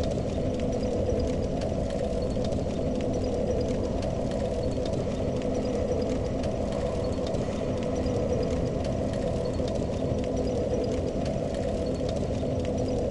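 A fire crackles and hisses steadily.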